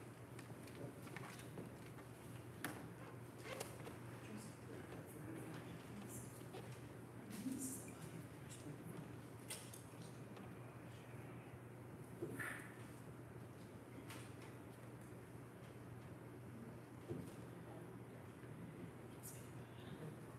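A man and a woman talk quietly nearby.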